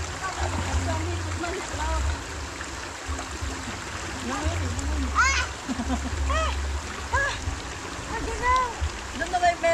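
Water splashes as people move in a stream.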